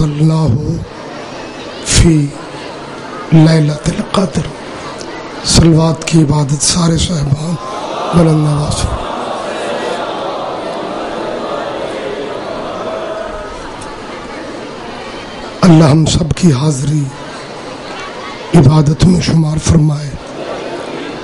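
A middle-aged man speaks forcefully into a microphone over a loudspeaker, in bursts with pauses.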